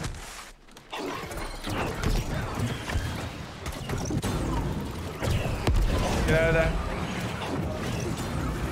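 Weapons clash and magic blasts in a fight.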